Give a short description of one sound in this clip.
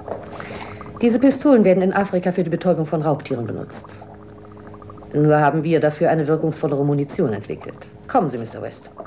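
A woman speaks calmly and coldly, close by.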